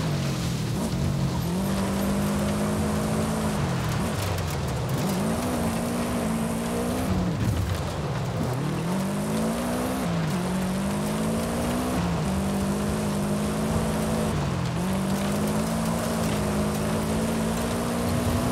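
Tyres crunch and rumble over gravel.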